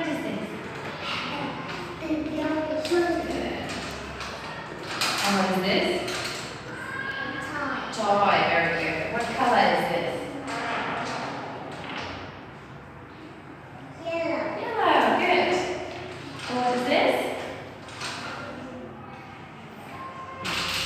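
A little girl answers in a small voice.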